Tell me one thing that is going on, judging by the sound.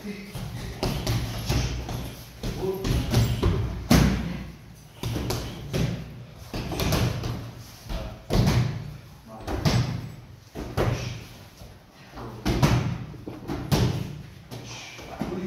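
Bare feet shuffle and thump on a padded floor.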